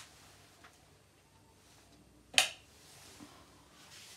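A wall switch clicks.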